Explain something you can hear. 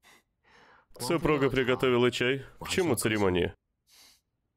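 A young man speaks lightly and teasingly nearby.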